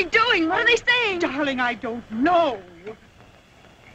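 A young woman cries out in alarm and speaks excitedly.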